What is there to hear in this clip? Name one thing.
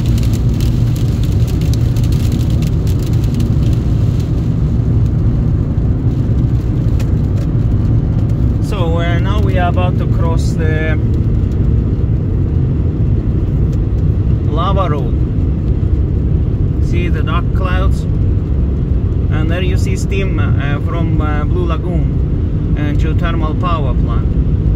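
Raindrops patter on a car's windscreen.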